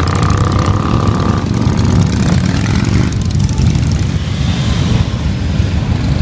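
Motorcycle engines rumble loudly close by.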